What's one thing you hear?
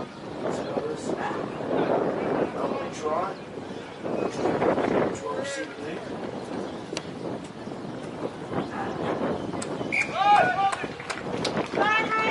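Men shout to each other across an open playing field.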